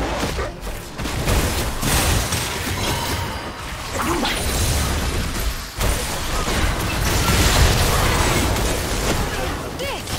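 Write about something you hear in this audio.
Magical spell effects whoosh and crash during a fast fight.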